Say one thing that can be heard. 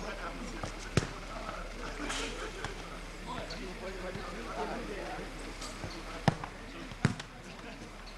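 A football is kicked outdoors.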